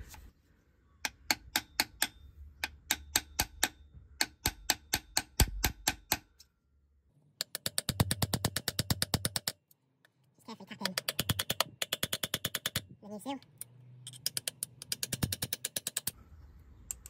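A ratchet wrench clicks rapidly as bolts are turned.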